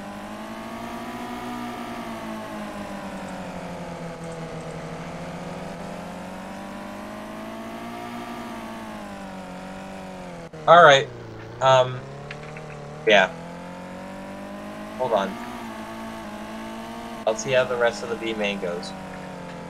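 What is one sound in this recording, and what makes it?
A midget race car engine drones, its pitch rising and falling with speed.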